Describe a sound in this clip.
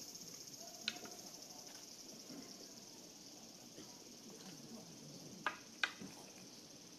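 Wooden swords clack sharply together.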